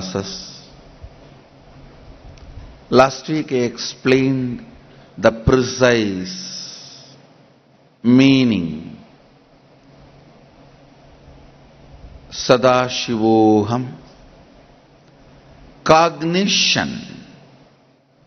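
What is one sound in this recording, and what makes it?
A man speaks slowly and calmly into a microphone, in short phrases with long pauses.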